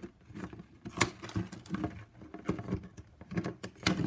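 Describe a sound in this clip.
Scissors snip through plastic strapping.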